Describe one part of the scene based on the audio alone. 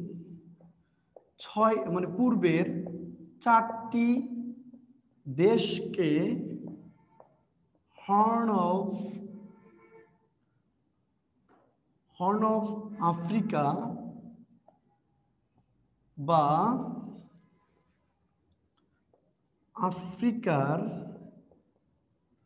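A man speaks in short, deliberate phrases with pauses, as if lecturing.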